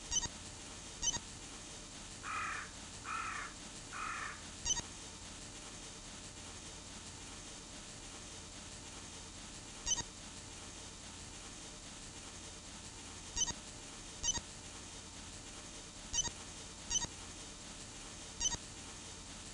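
A short electronic chat beep sounds several times.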